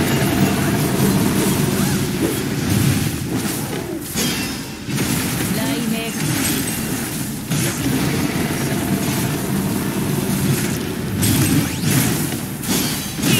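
Heavy slashing hits thud and clang rapidly.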